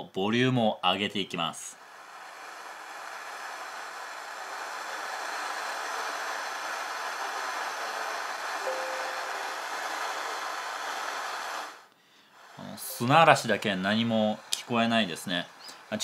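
A young man talks calmly and closely into a microphone.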